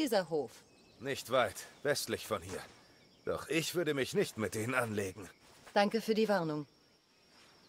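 A man answers in a calm voice.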